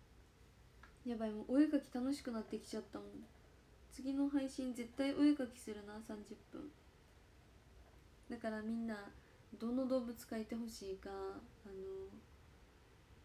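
A young woman speaks calmly and close by, in short bursts with pauses.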